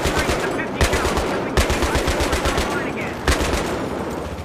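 A heavy machine gun fires loud bursts.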